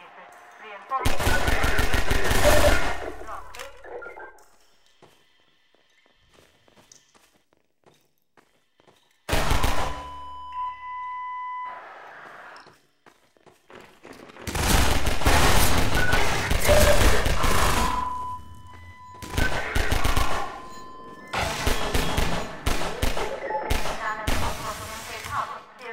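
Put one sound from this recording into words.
A pistol fires quick bursts of shots, echoing off stone walls.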